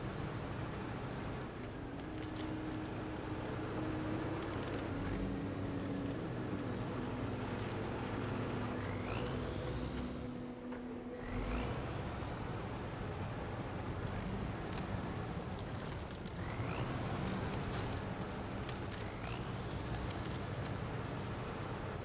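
Tyres crunch through snow and mud.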